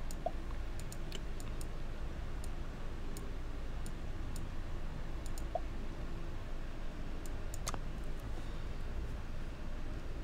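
Short, high game menu clicks tick as a list scrolls and buttons are pressed.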